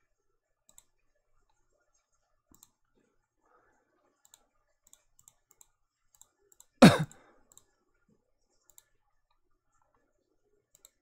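Short soft clicks tick now and then as menu items are selected.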